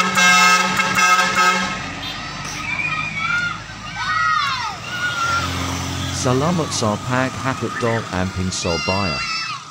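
A heavy truck rumbles as it drives away down a road.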